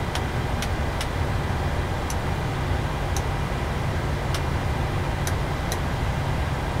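Cockpit switches click sharply now and then.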